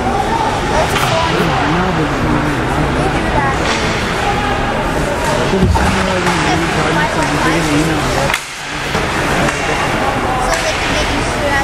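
Hockey sticks clack against a puck now and then.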